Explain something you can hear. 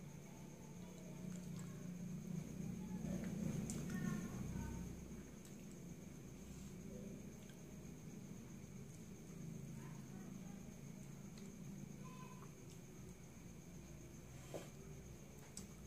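A woman chews food quietly close by.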